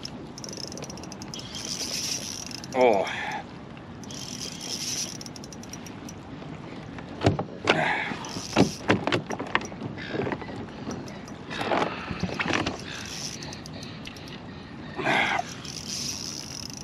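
Water laps gently against a small boat's hull and wooden pilings.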